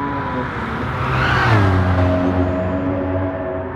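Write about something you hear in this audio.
Tyres screech as a car slides through a bend.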